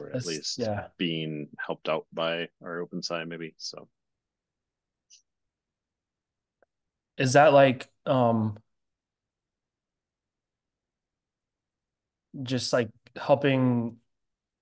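A man speaks calmly and close to a microphone, in short bursts with pauses.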